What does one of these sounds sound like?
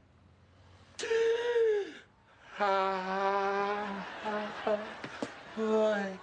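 A man cries out in long, drawn-out wails.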